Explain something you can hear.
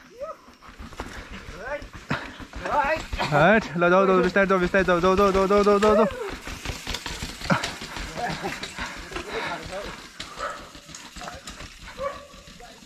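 A bicycle rattles and clatters down stone steps.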